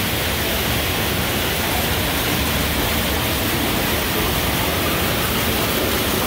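Liquid mash pours in a thick stream into a large metal tank.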